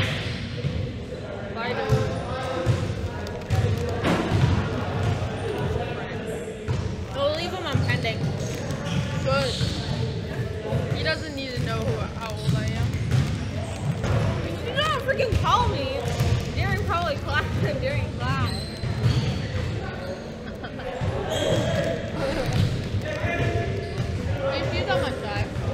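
Teenage girls chat and talk with animation close by.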